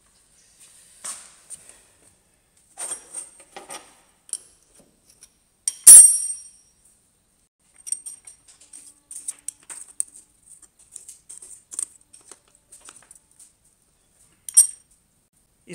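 Metal tools clink and tap against a machine.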